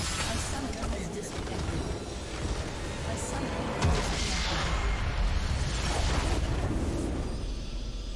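Game combat effects clash and blast loudly.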